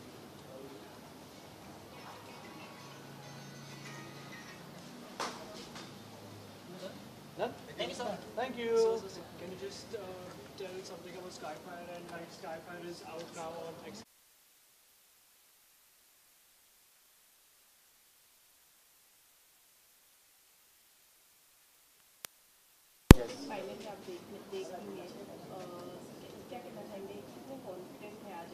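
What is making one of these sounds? Men chat and murmur nearby.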